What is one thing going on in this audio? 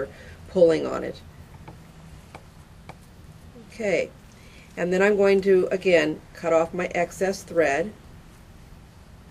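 Tissue paper rustles and crinkles in hands.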